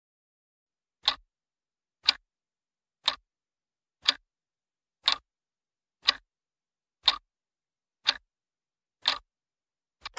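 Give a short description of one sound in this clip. A clock ticks steadily, once every second.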